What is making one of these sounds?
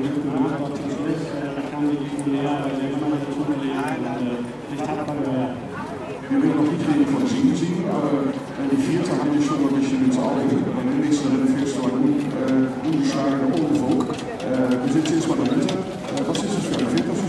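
A younger man answers into a handheld microphone.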